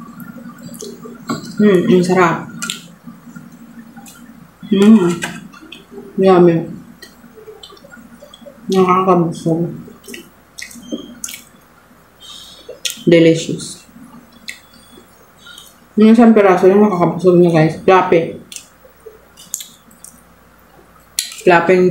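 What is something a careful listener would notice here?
A young woman chews and smacks soft food close to a microphone.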